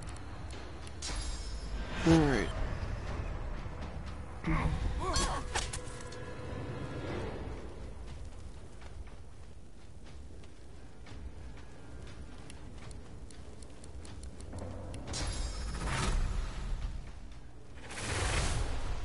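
Fire spells burst and roar in bursts.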